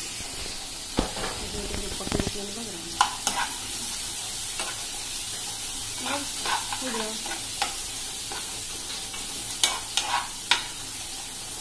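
A metal spatula scrapes and knocks against a metal wok while stirring chickpeas.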